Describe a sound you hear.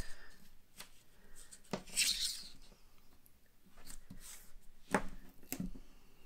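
Tape peels off a roll with a sticky rasp.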